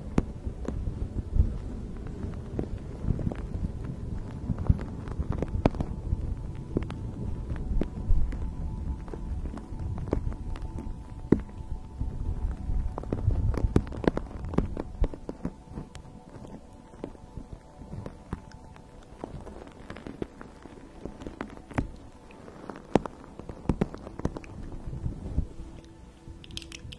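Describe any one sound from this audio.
Fingernails tap and scratch on a plastic object close to a microphone.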